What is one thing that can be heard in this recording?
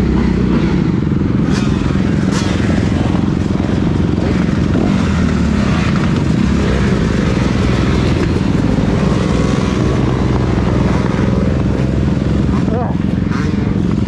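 Other dirt bike engines rev and buzz nearby.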